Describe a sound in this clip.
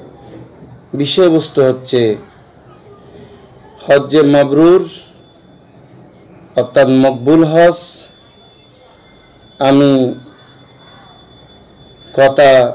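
A middle-aged man speaks calmly in short phrases over an online call.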